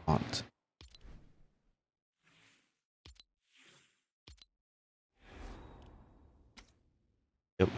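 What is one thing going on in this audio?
Short electronic menu chimes and clicks sound.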